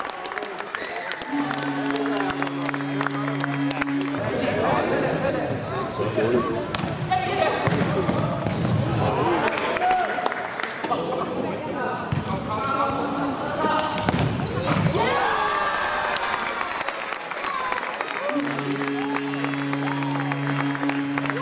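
Young spectators close by chatter and call out.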